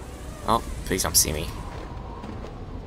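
Wind rushes past during a glide.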